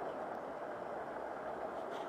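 A small stream trickles and splashes over rocks.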